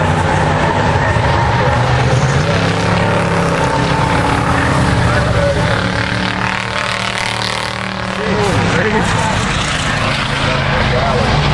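Race car engines roar loudly around a track.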